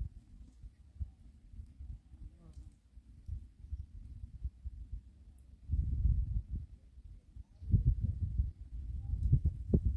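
A wood fire crackles under a kettle.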